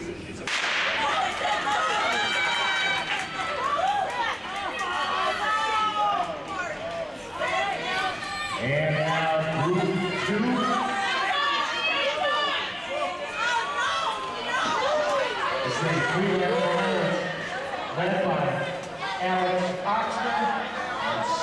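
A crowd of spectators cheers and shouts excitedly in a large echoing hall.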